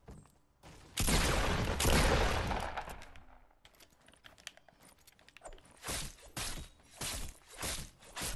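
Wooden planks clatter and knock as walls are built in quick bursts.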